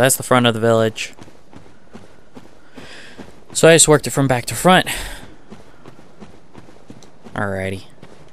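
Footsteps crunch on soft ground.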